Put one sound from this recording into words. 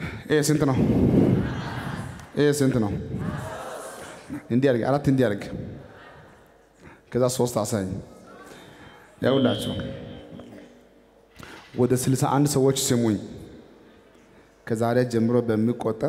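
A young man speaks with animation through a microphone, in short loud bursts that echo around a large hall.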